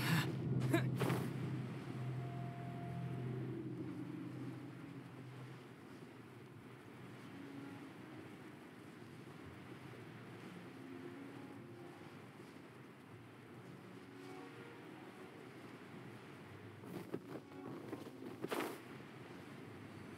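Wind rushes softly and steadily past a gliding figure.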